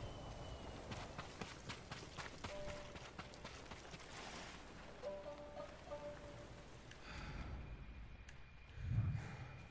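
Footsteps run across dirt.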